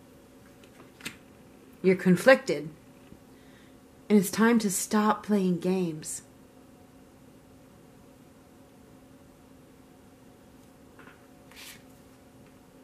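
A playing card is laid down softly on a cloth-covered table.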